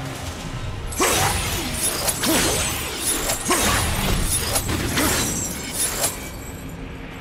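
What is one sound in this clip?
Magical energy crackles and whooshes in loud bursts.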